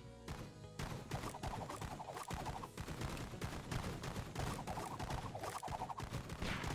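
Cartoonish gunshots pop rapidly and repeatedly.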